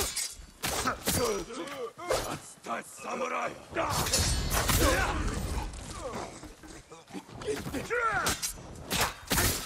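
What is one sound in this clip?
Swords clash and ring in quick blows.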